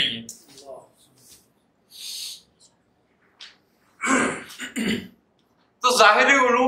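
An elderly man speaks calmly and close by, pausing between phrases.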